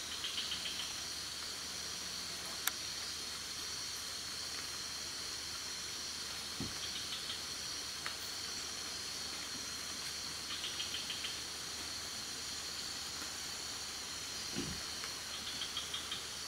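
A porcupine rustles through leaves.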